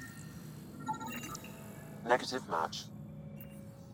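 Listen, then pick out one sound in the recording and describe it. A scanning device chirps and warbles electronically.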